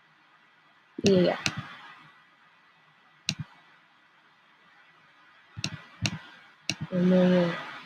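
Short interface clicks tick several times.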